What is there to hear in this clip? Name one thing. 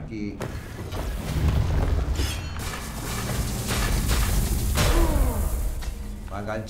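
Electric bolts crackle and zap in a game.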